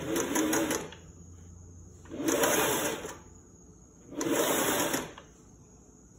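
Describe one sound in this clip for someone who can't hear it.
A sewing machine runs in short bursts of fast stitching.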